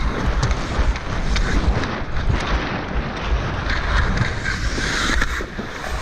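A hockey stick clacks against a puck.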